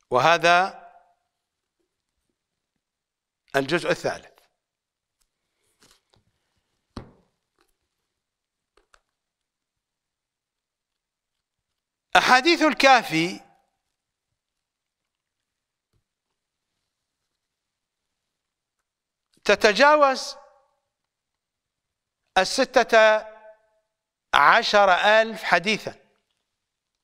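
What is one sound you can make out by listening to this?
An elderly man speaks into a close microphone in short, measured phrases with long pauses.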